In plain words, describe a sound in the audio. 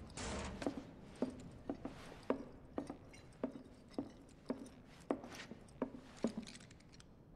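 Footsteps thud on wooden floorboards at a steady walking pace.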